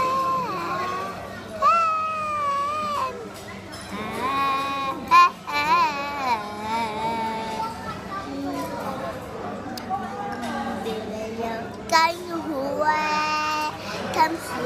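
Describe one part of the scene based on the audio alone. A young girl sings close up, in a high, wavering voice.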